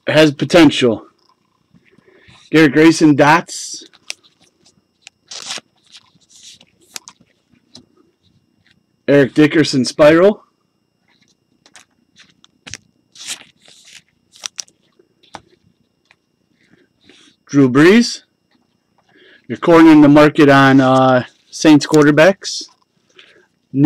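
Trading cards rustle and slide softly as hands handle them.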